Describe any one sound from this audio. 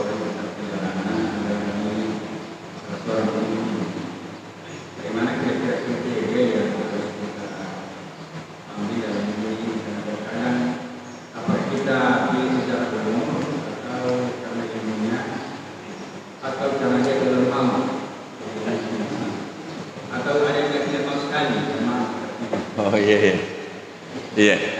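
An elderly man speaks calmly and steadily into a microphone.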